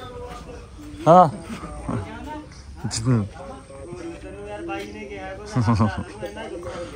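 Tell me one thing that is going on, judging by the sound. Men talk and call out to each other.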